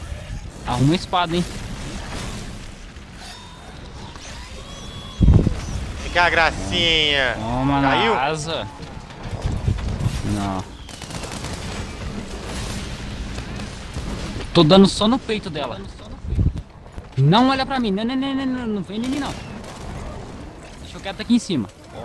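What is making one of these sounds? A game's ice crystals burst and shatter with loud crashes.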